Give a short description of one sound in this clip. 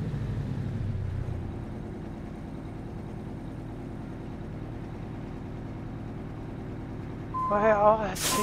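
A heavy truck engine rumbles steadily at low speed.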